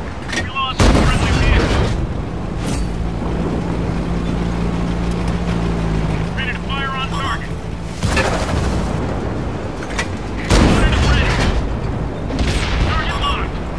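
A tank engine rumbles low as the tank drives along.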